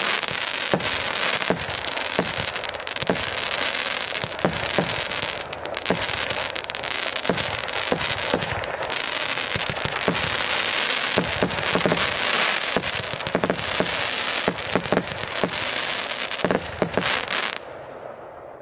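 Fireworks launch with rapid whooshing pops.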